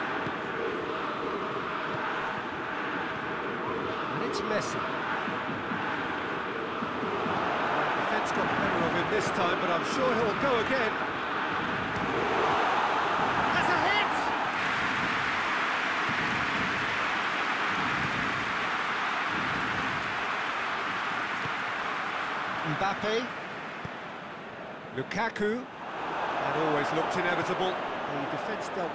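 A football is kicked with dull thumps.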